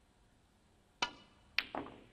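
A snooker cue strikes the cue ball with a sharp tap.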